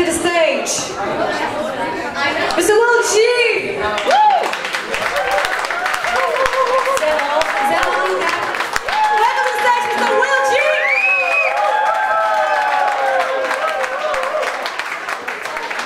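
A young woman sings into a microphone, loud in an echoing hall.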